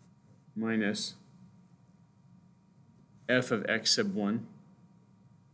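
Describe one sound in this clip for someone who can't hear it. A middle-aged man speaks calmly into a nearby microphone.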